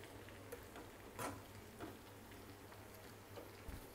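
A spatula scrapes and stirs food in a metal pan.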